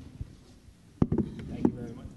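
A microphone thumps as it is adjusted.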